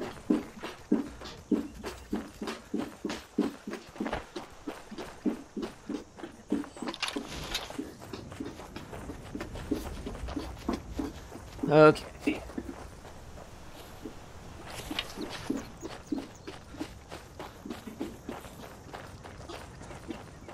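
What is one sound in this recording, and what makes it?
Shoes slide and thump in rhythmic steps on a slide treadmill.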